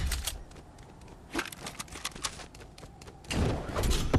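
Footsteps patter quickly on sand and grass.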